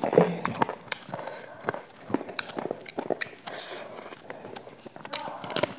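Crispy food crunches and crackles between fingers, close to a microphone.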